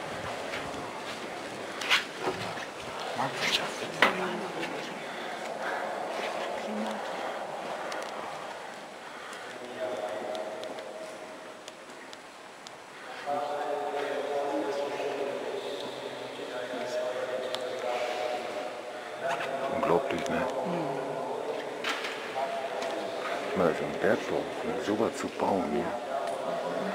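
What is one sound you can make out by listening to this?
Adult men and women talk quietly in a large echoing hall.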